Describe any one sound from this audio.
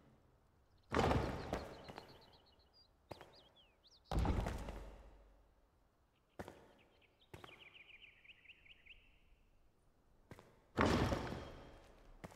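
Heavy stone blocks thud into place with a deep boom.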